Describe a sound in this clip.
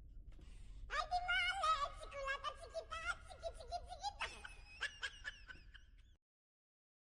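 A young boy talks with animation, close by.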